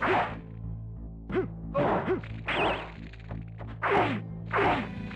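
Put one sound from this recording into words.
A creature shrieks and snarls in short bursts.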